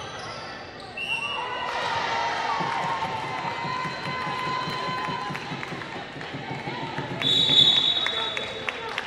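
Young women players shout and call out to each other.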